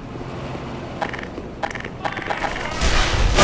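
Gunshots crack sharply nearby.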